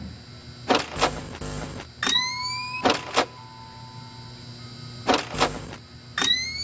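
Static hisses in short bursts.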